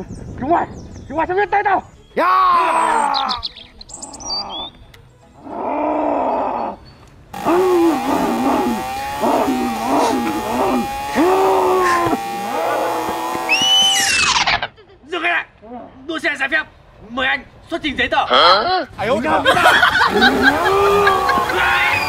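A man in a mask growls and roars.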